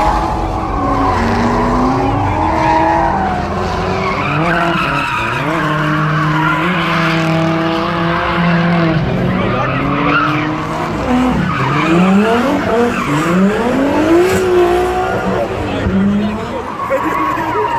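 Car engines roar and rev hard, rising and falling in pitch.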